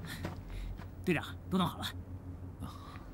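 A young man speaks up eagerly, close by.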